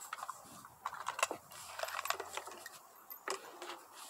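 Metal parts click and clack as a rifle is handled.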